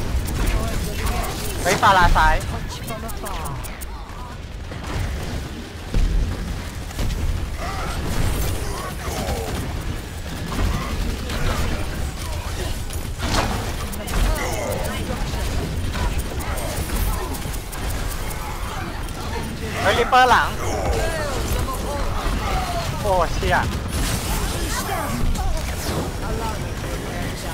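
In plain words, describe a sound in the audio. Game weapons fire in rapid bursts with energy zaps and impacts.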